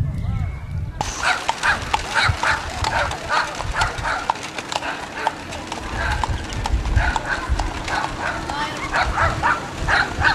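Carriage wheels roll over pavement.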